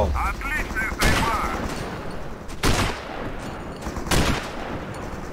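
A rifle fires several loud, sharp shots that echo briefly.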